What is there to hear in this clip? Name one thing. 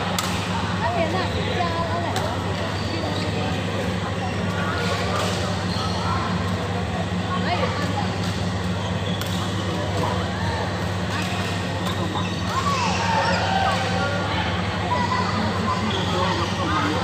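Players call out and chatter in a large echoing hall.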